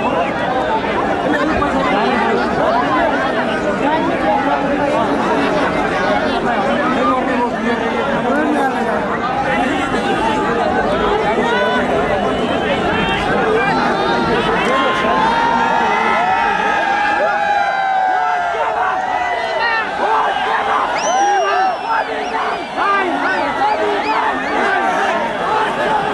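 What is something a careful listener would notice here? A large crowd outdoors shouts and cheers loudly, with many voices at once.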